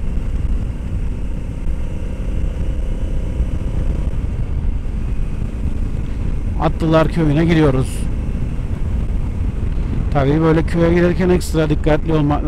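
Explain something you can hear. A motorcycle engine rumbles steadily while cruising.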